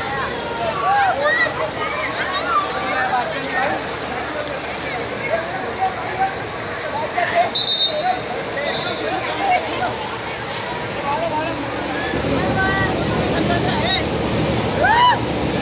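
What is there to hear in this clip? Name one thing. Water splashes as children play in a pool.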